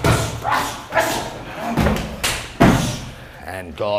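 A body thumps onto a mat.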